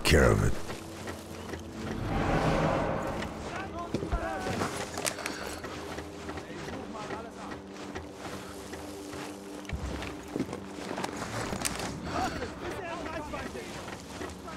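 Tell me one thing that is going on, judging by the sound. Boots clatter on wooden ladder rungs.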